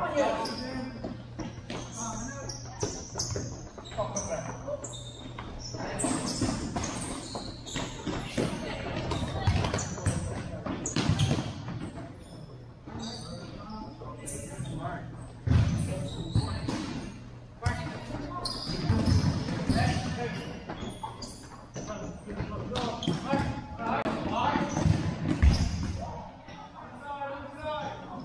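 A ball is kicked with dull thuds in a large echoing hall.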